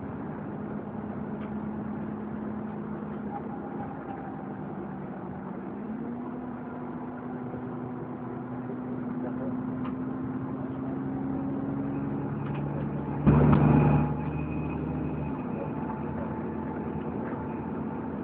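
A bus engine hums steadily, its pitch shifting as it changes speed.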